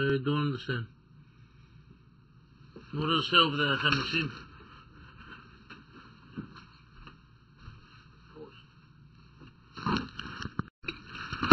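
A man speaks in short phrases through a microphone.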